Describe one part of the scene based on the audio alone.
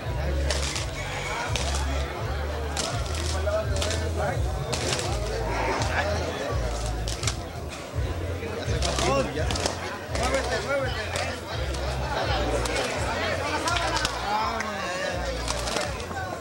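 Roosters flap and beat their wings as they fight.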